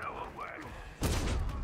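A heavy landing thuds hard on the floor.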